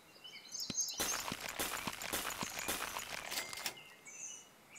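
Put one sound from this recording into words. A game's dice roll with a loud rattling, clattering sound effect.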